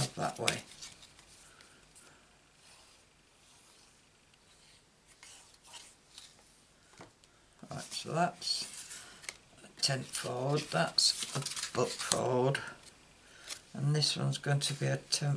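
Paper cards rustle and slide against each other.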